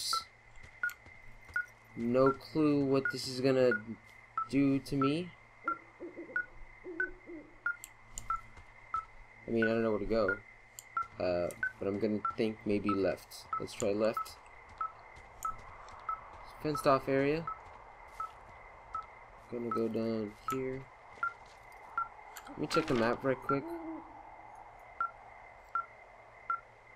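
A handheld receiver beeps steadily at a quick, even pace.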